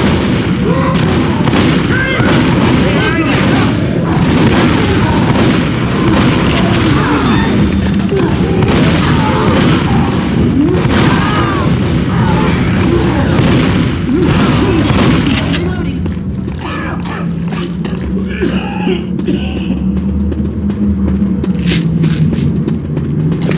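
Shotgun blasts ring out again and again.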